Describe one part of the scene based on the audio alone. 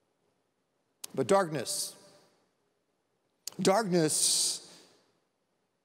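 A middle-aged man speaks calmly into a microphone, with a light echo.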